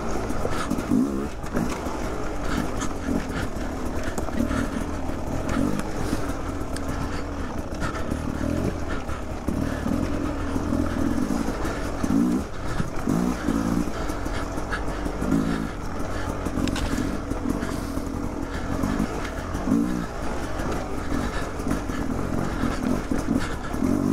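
Rocks clatter and crunch under a dirt bike's tyres.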